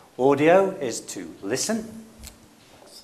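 A middle-aged man speaks clearly into a clip-on microphone.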